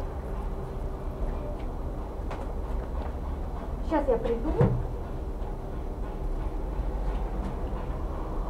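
A satin dress rustles as a person moves close by.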